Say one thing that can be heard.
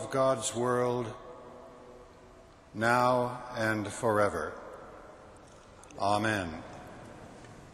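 An elderly man chants a blessing in a slow, sung voice, ringing through a large echoing hall.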